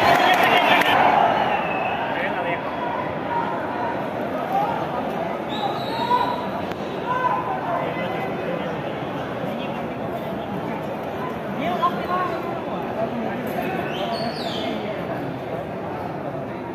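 A stadium crowd murmurs and cheers steadily in the distance.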